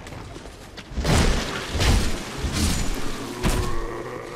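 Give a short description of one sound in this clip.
Weapons clash with heavy blows.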